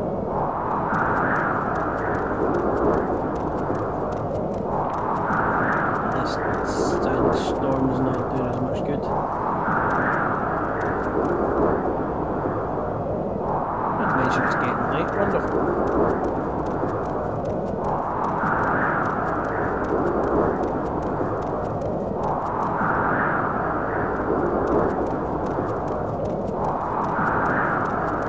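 Wind howls steadily outdoors, swelling and fading in slow, even gusts.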